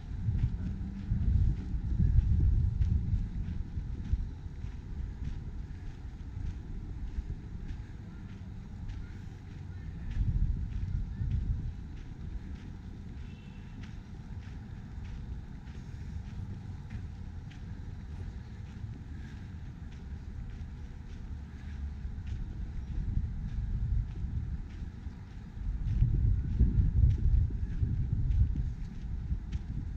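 Footsteps crunch steadily on a gritty path outdoors.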